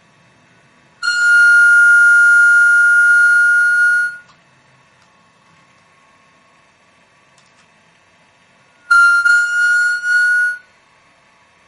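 A piercing feedback whine swells up loudly, holds, then cuts off.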